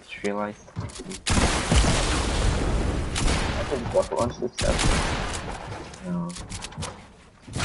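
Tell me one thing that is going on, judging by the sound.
Building pieces clatter and thud into place in quick succession.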